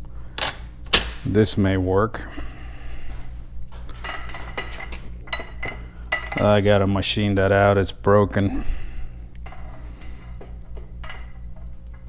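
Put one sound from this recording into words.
Metal parts clink and knock as they are handled.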